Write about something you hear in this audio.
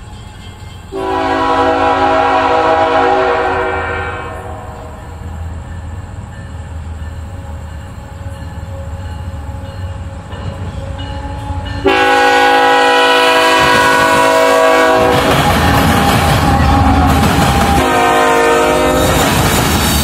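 A train horn blows loud, long blasts as the train approaches.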